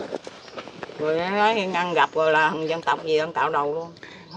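An elderly woman speaks calmly close by.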